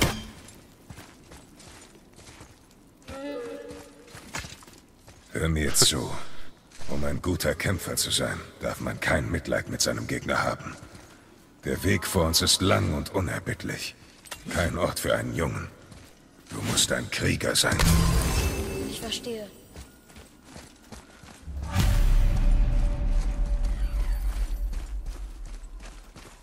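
Heavy footsteps crunch on stone and gravel.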